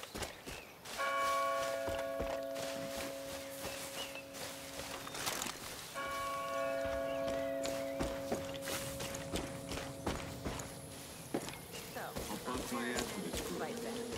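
Footsteps crunch through grass and dirt.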